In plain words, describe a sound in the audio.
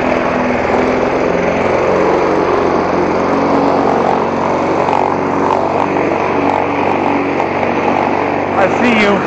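A petrol lawn mower engine drones loudly and steadily close by.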